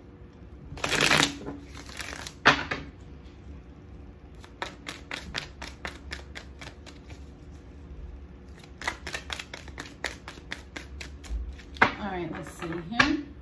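Playing cards riffle and slap together as they are shuffled.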